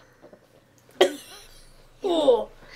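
A girl squeals loudly.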